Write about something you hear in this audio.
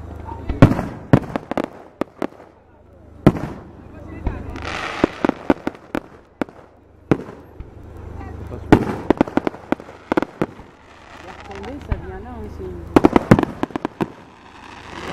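Fireworks burst and bang in quick bursts.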